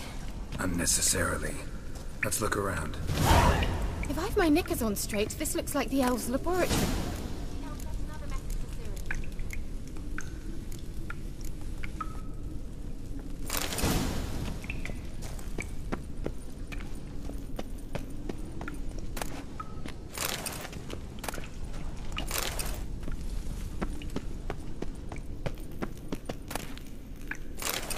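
Footsteps tread on a stone floor.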